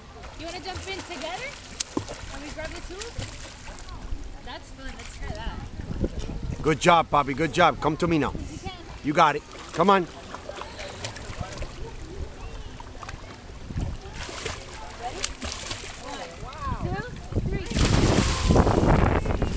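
A swimmer splashes through water with arm strokes and kicks.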